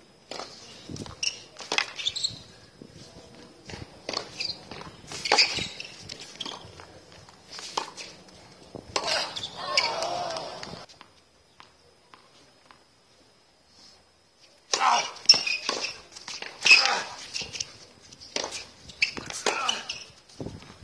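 Sneakers squeak and scuff on a hard court.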